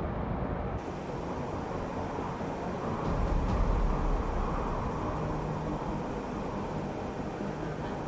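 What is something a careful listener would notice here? A vehicle engine hums low and steady.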